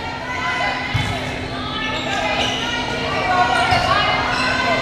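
A volleyball is struck with dull thuds.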